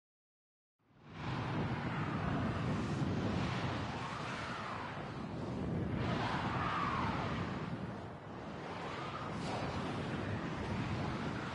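A spacecraft engine hums with a low, steady drone.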